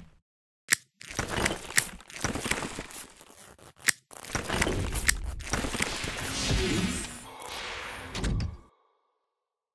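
A power cutter whines as it cuts through metal panels.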